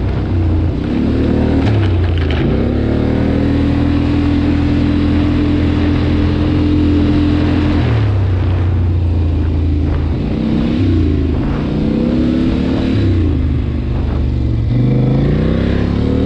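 A quad bike engine drones close by, revving up and down as the bike rides along.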